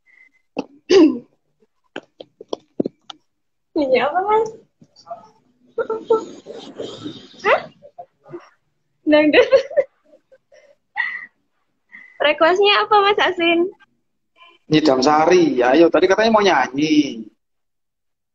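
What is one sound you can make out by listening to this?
A young woman talks and laughs over an online call.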